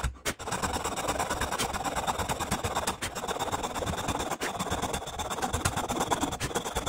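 A metal tool scrapes rapidly against wood.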